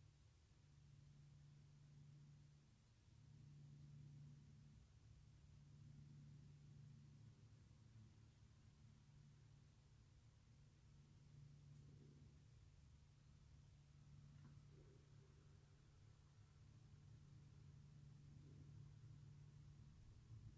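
A young woman hums a low, steady note, pausing briefly to breathe.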